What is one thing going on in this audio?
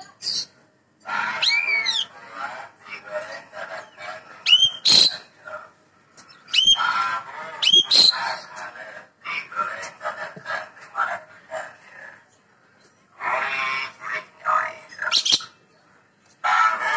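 An Asian pied starling sings in bursts of loud rising whistles and harsh chatter.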